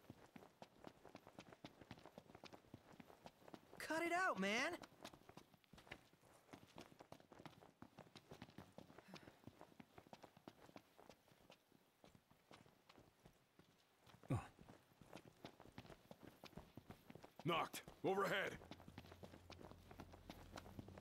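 Footsteps patter quickly over dry ground.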